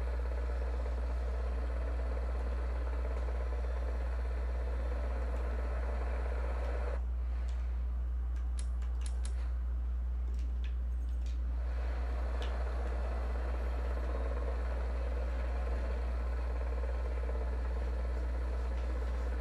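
A helicopter engine drones steadily with whirring rotor blades.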